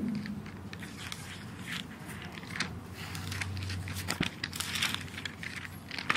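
A middle-aged woman speaks softly into a microphone.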